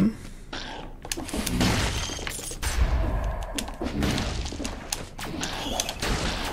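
Game sword slashes whoosh and strike in quick bursts.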